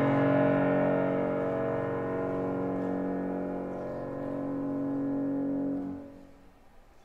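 A grand piano plays a rich, full chord passage that rings out in a large hall and then stops.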